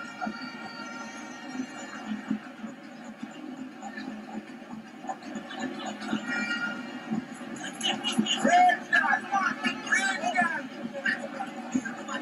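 A stadium crowd murmurs and cheers steadily outdoors.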